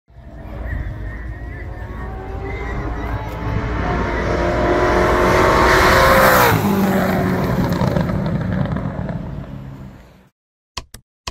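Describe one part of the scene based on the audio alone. A race car engine roars louder as the car speeds closer, then drops in pitch as it passes and fades away.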